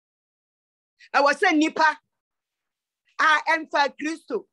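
An elderly woman speaks forcefully through an online call.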